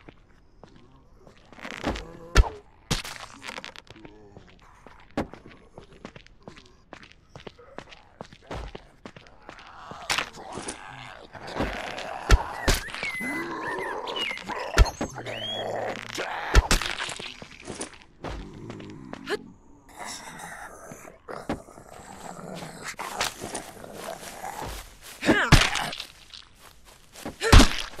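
A game character swings a melee weapon with sharp whooshing hits.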